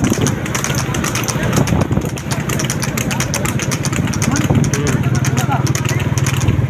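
Hooves clop on asphalt.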